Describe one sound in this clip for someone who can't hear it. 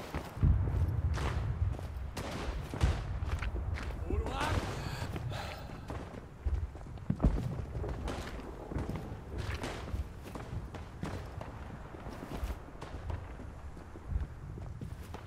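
Footsteps tread steadily over dirt and wooden boards.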